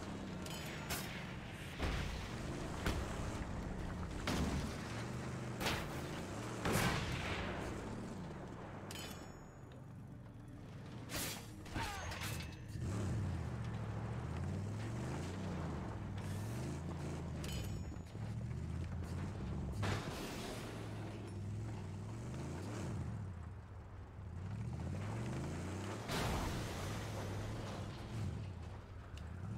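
A car engine roars and revs up and down.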